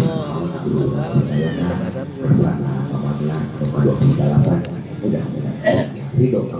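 A man speaks steadily through a microphone and loudspeaker in a large echoing space.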